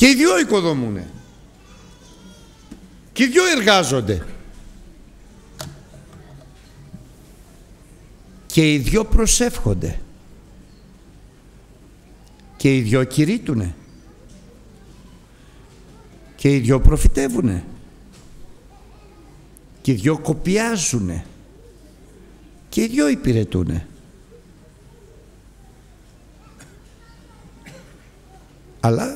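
An elderly man preaches with emphasis into a microphone, in bursts separated by pauses, in a reverberant hall.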